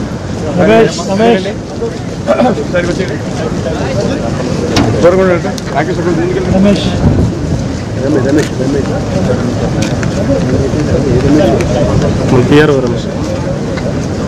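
Men talk nearby in short bursts.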